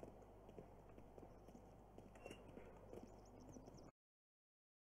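Footsteps tap softly on pavement.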